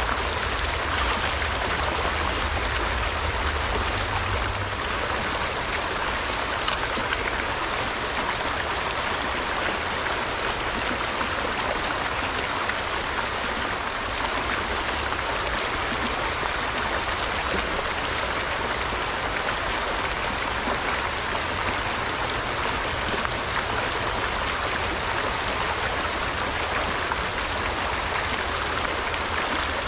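A shallow stream babbles and splashes over rocks and branches nearby.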